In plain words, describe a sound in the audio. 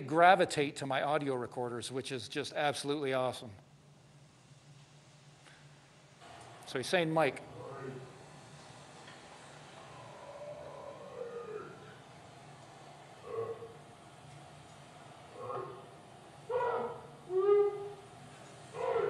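A man speaks through a microphone and loudspeakers in a large room.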